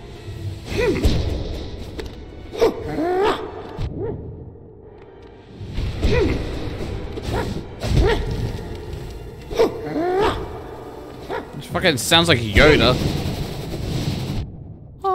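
Sword slashes whoosh and clang in quick bursts.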